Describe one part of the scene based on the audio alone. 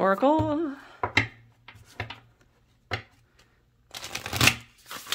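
Cards rustle and tap together as hands shuffle them.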